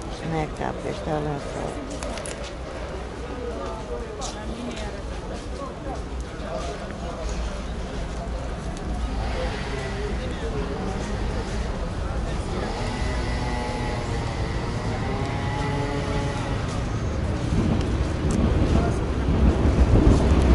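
People chatter nearby outdoors.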